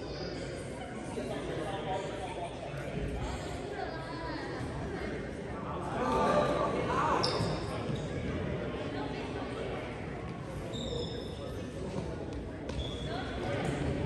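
A crowd of people chatters throughout a large echoing gym.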